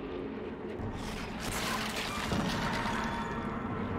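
A thick liquid splatters wetly onto a floor.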